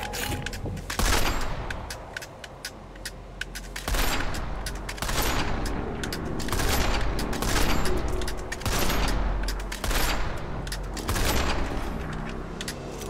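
Rifle shots crack loudly, each followed by a rolling echo.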